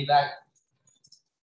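A man speaks briefly and calmly.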